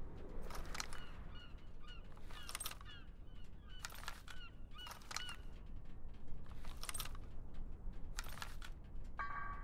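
Metal parts of a submachine gun click and clack sharply as it is handled.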